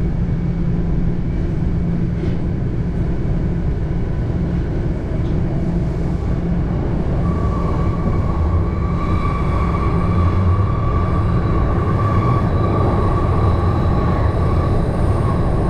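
A subway train rumbles loudly along the tracks.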